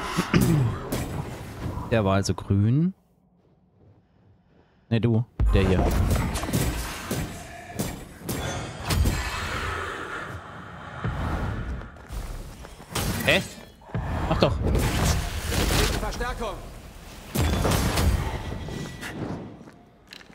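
Sword blows clash and crackle in a fast fight.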